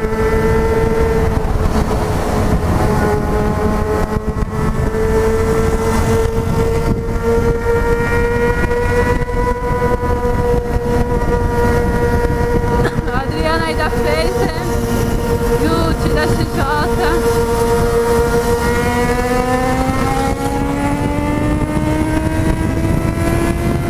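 A motorcycle engine hums steadily at cruising speed, then revs higher.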